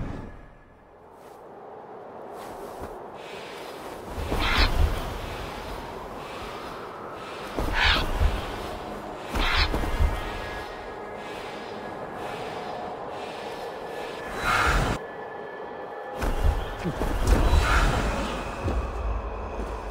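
Wind rushes past steadily as a bird glides through the air.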